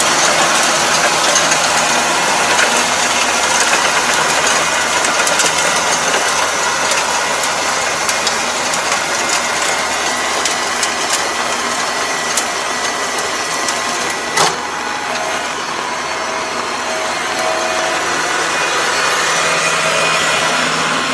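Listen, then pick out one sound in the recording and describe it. A tractor engine runs steadily at a distance.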